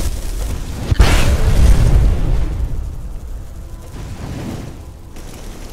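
A fiery explosion booms and roars.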